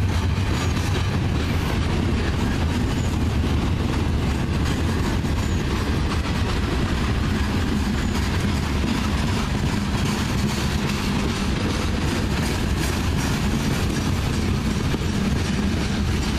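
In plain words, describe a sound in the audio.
Freight cars rumble past close by with a heavy, steady roar.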